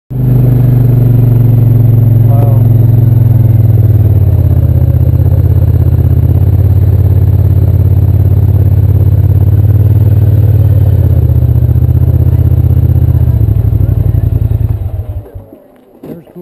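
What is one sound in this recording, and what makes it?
A quad bike engine rumbles loudly up close.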